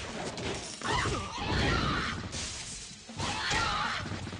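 Explosions boom in bursts.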